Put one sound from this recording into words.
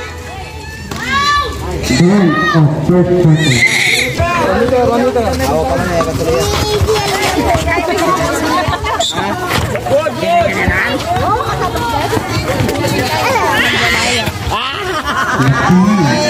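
A crowd of spectators cheers and shouts loudly outdoors.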